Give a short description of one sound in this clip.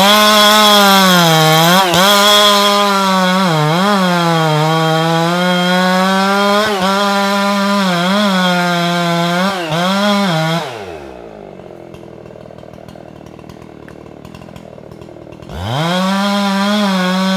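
A chainsaw engine roars close by, its pitch rising and falling.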